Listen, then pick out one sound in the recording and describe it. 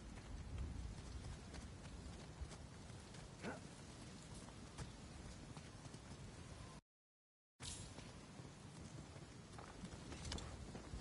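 Footsteps scuff on stone steps and a path.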